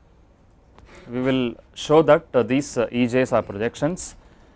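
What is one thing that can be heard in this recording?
A man speaks calmly, as if lecturing, close to a microphone.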